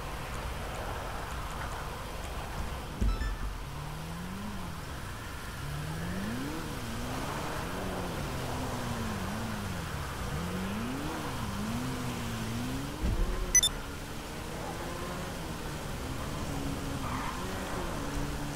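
A motorcycle engine hums and revs up and down as it rides.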